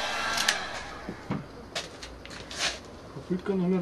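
Fabric rustles and crinkles as it is lifted.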